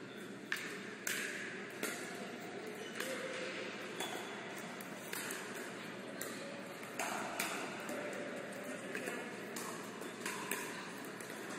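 Paddles hit a plastic ball with sharp, echoing pops, back and forth.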